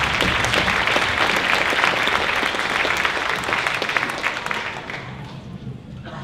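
An audience claps and cheers in a large hall, then fades out.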